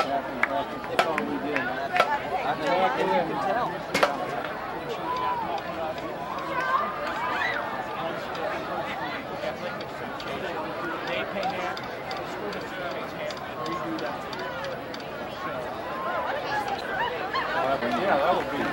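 A crowd of children and adults chatters excitedly outdoors.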